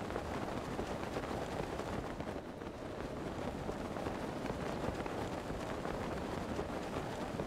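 Wind rushes steadily.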